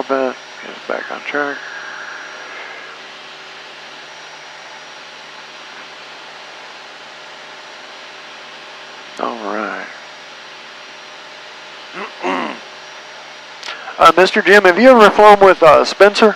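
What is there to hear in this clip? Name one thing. A man talks in short bursts over a headset intercom.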